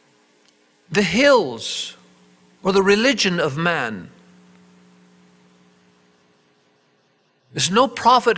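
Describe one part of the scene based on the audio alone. An elderly man speaks with animation into a microphone, heard through loudspeakers in an echoing room.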